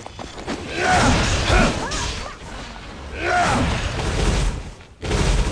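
Spells burst and clash with loud bangs.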